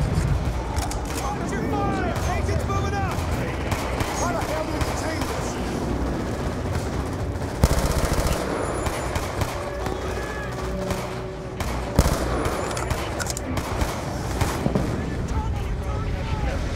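Explosions and battle noise rumble steadily in the distance.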